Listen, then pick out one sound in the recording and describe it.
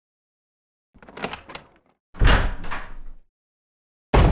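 A heavy wooden door creaks slowly open.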